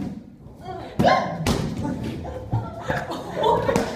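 An inflatable exercise ball smacks against a man's face.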